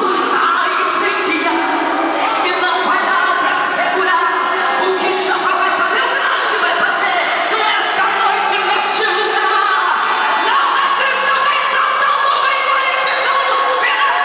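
A young woman sings through a loudspeaker in a large echoing hall.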